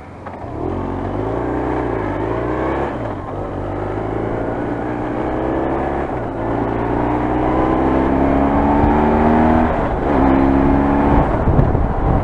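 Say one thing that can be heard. A motorcycle engine revs up and drops as gears change.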